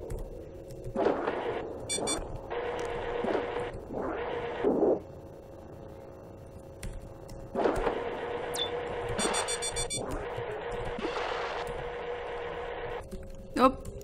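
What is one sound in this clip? A game's electronic whooshes and whirs come and go.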